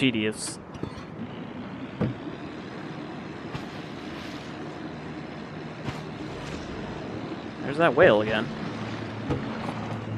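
Water splashes and laps gently around a small rowing boat.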